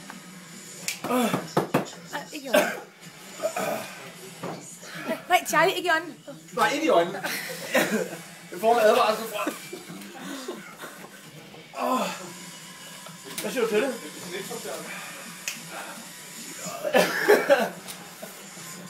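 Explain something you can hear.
Young men laugh loudly close by.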